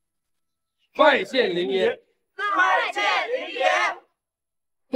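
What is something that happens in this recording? A group of men call out a greeting together, close by.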